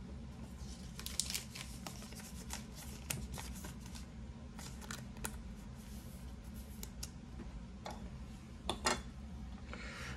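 Trading cards rustle and click in a plastic sleeve.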